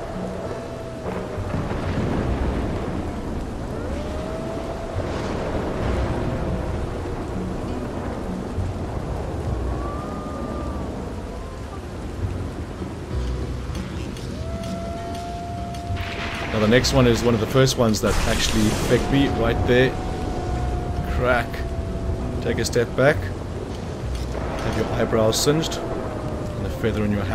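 Thunder rumbles low and deep across the sky.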